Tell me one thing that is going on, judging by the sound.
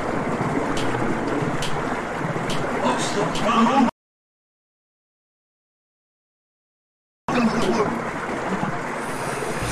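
Water swirls and gurgles steadily.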